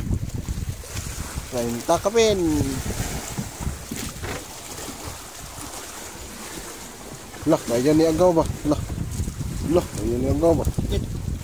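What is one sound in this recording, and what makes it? A fish splashes and thrashes in the water beside a boat.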